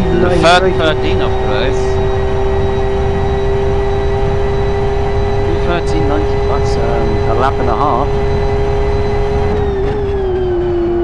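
A racing car engine drones at a steady high pitch, then dips slightly near the end.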